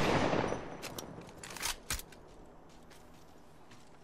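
A rifle clicks and clatters as it reloads.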